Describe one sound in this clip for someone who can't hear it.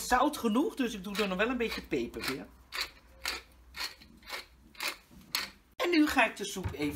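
A pepper mill grinds with quick clicks.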